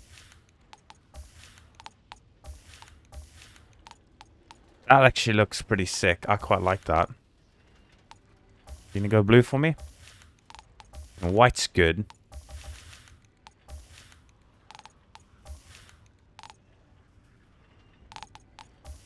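Soft menu clicks tick now and then as options are selected.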